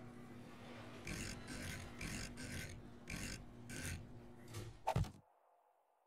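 Stone blocks knock into place one after another.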